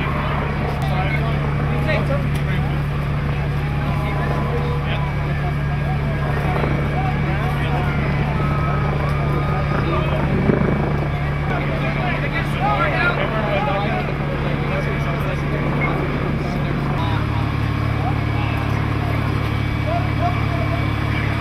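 Several men talk among themselves nearby, outdoors.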